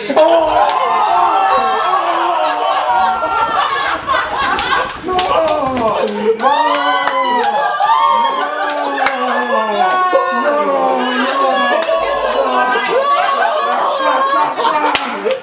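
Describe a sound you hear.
A group of young women scream and laugh loudly nearby.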